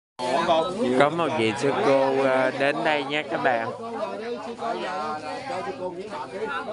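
Other people chatter nearby outdoors.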